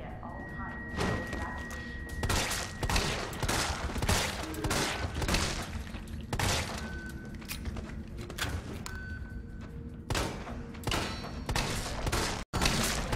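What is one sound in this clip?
A handgun fires repeated loud shots in a hard, echoing space.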